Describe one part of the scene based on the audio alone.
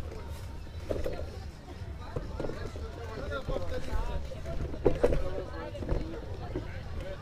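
Several people chatter at a distance outdoors.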